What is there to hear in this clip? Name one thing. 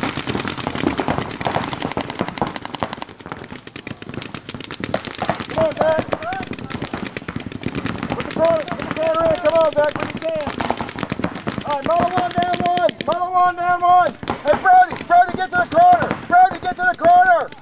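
Paintball markers fire in rapid bursts of sharp pops.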